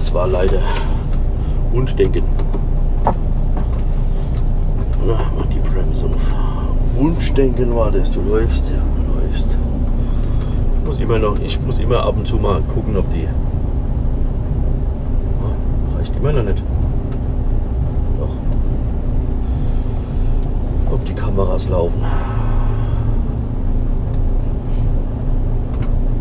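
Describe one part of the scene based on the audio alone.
A vehicle engine hums low and steady.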